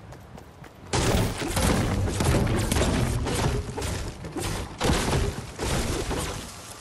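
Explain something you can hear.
A pickaxe strikes wood again and again with hard thwacks.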